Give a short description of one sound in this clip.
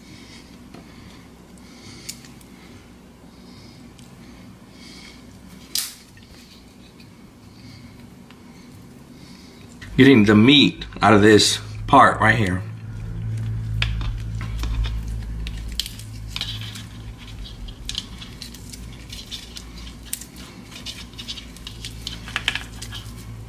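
Shrimp shells crackle and snap as fingers peel them.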